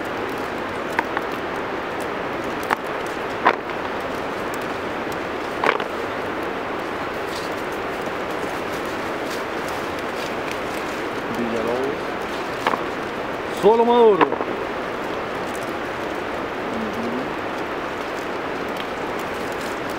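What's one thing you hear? Leaves rustle as hands push through a bush.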